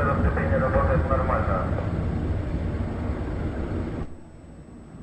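A Soyuz rocket roars with a deep rumble as it climbs far off.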